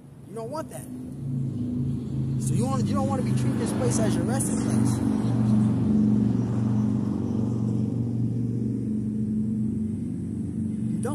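Traffic rumbles past on a nearby road.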